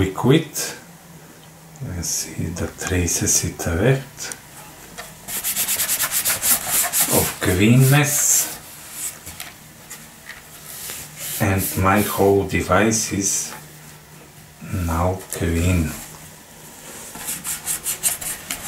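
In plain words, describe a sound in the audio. A wet wipe rubs quickly over a hard plastic surface.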